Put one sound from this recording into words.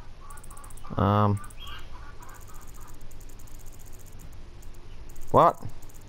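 Short electronic menu tones chime as a selection moves.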